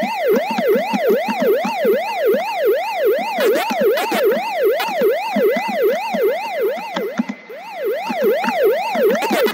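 A wailing arcade game siren rises and falls steadily.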